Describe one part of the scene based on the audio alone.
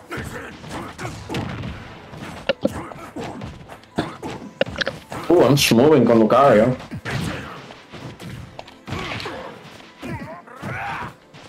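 Sharp punching and blasting effects crack as fighters trade blows.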